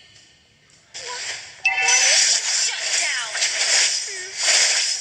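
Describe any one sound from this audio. Magical spell effects whoosh and chime in a video game.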